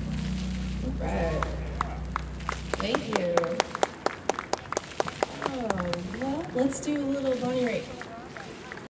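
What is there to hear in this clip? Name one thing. A young woman sings through a microphone and loudspeakers outdoors.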